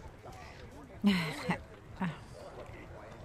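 A young woman giggles softly close by.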